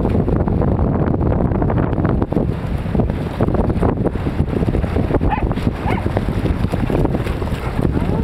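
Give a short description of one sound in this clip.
Small waves break in the surf.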